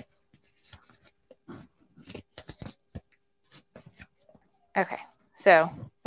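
Stiff paper rustles and crinkles.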